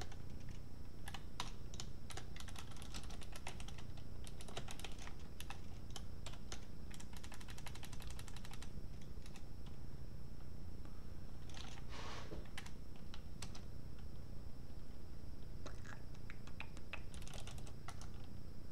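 Computer keys clatter in quick bursts of typing.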